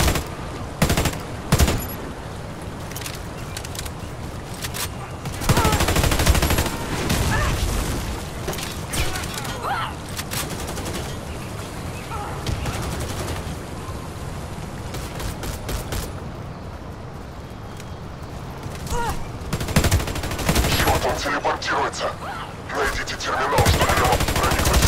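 Sniper rifle shots crack sharply, one at a time.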